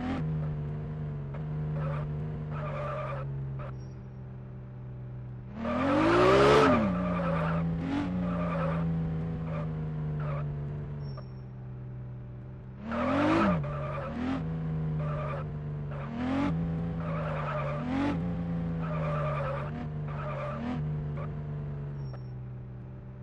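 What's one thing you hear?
A sports car engine hums steadily and revs up in short bursts.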